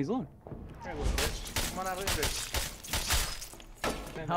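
Swords clash and strike in a fierce fight.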